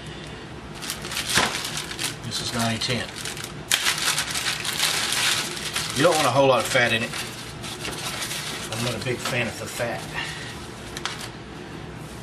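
Plastic wrap crinkles and rustles as it is handled.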